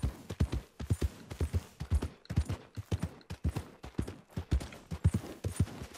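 A horse gallops with heavy hoofbeats on soft ground.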